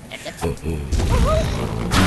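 A cartoon bird is flung from a slingshot with a whoosh.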